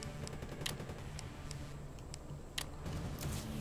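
Menu selection clicks tick softly.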